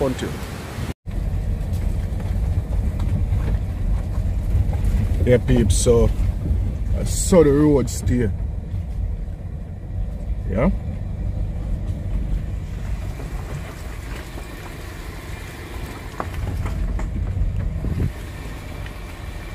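A car engine rumbles as the car drives slowly along a rough road.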